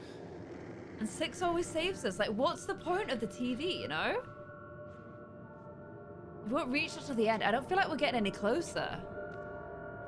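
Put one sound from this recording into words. A young woman talks into a close microphone.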